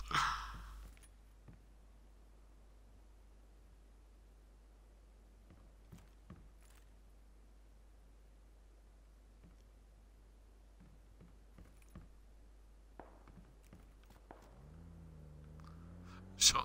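Footsteps creak and thud softly on a wooden floor.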